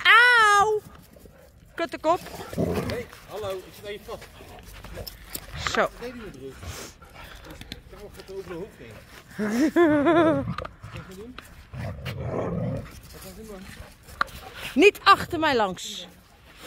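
A dog yelps and whines in short, high bursts.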